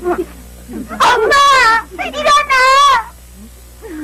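A young boy cries and wails loudly with a wavering voice.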